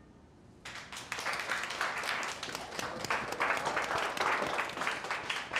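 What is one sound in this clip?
A crowd applauds with lively clapping.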